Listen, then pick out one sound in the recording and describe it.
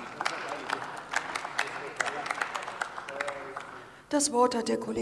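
People in a large hall applaud.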